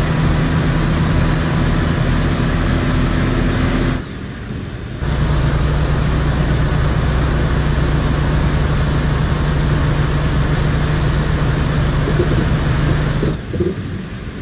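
A truck engine hums steadily, cutting out briefly and then quieting.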